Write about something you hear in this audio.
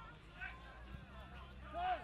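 A goalkeeper kicks a football with a dull thud.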